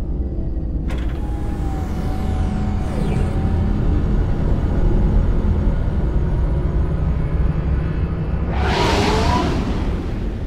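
Wind howls in a snowstorm.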